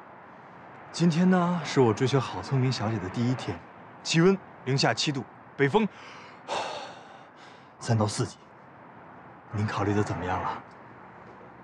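A young man speaks cheerfully and with animation, close by.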